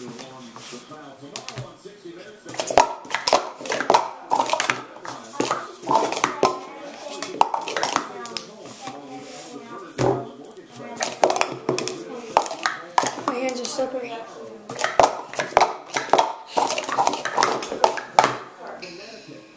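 Plastic cups clatter and clack rapidly as they are stacked and unstacked.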